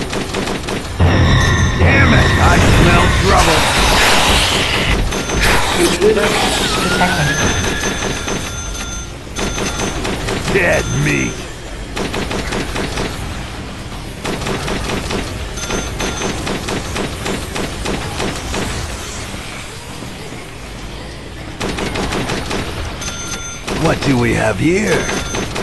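A heavy machine gun fires in rapid, rattling bursts.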